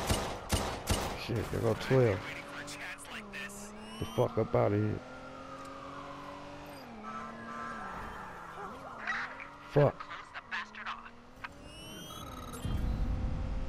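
A sports car engine hums and revs, rising and falling in pitch.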